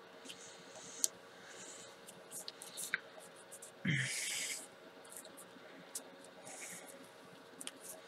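Small taps and clicks sound as a card is handled on a table.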